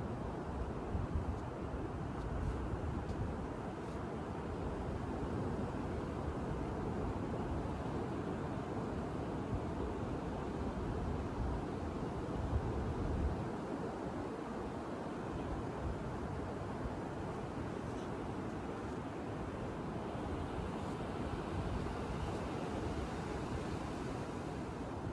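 Waves break and wash onto a beach nearby.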